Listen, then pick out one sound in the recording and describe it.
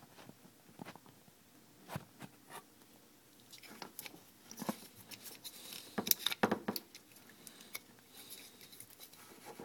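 Hands handle and click a plastic module close by.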